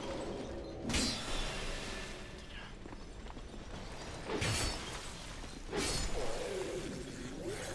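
Metal clashes as weapons strike.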